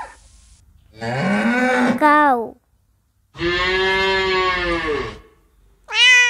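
Cows moo loudly.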